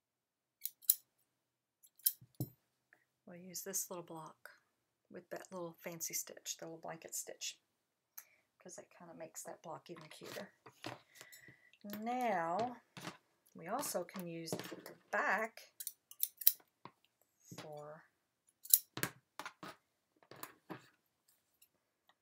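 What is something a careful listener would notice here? Scissors snip through cloth.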